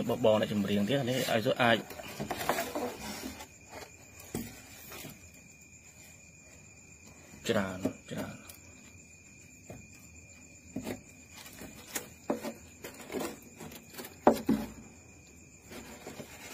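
Hands shuffle and tap while handling a live crayfish.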